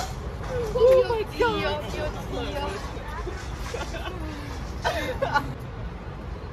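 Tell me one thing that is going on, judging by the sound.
Young women laugh loudly close by.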